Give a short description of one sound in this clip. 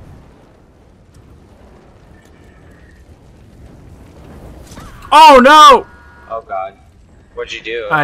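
Flames roar from a weapon.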